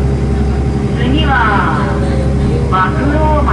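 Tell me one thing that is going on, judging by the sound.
Train wheels squeal on the rails.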